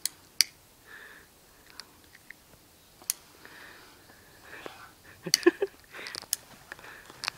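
A lighter clicks as it is struck.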